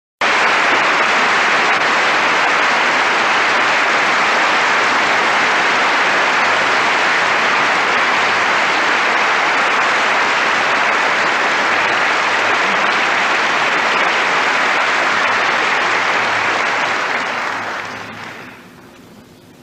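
Loud applause fills a large echoing hall, then fades away.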